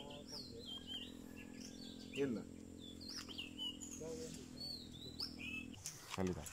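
Small birds chirp and twitter close by.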